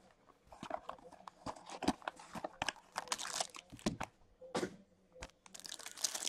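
Cardboard scrapes and rustles as a box is opened.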